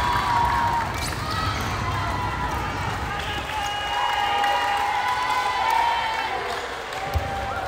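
Sneakers squeak sharply on a gym floor in a large echoing hall.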